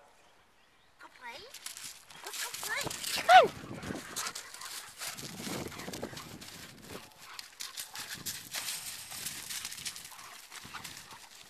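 Two large dogs scuffle and run on grass and gravel.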